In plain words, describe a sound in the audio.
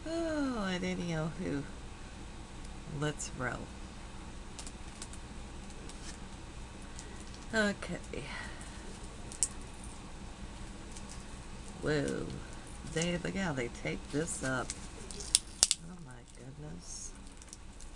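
An older woman speaks in short bursts close to a microphone.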